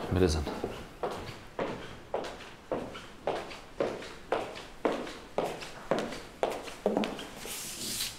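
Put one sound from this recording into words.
High heels click steadily on a hard floor.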